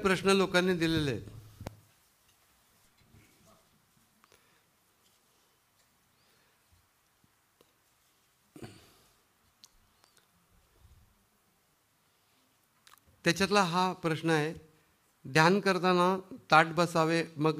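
A middle-aged man sings slowly into a microphone, with pauses between phrases.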